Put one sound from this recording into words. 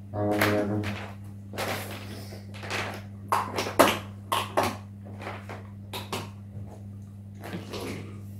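Metal cups clink and tap.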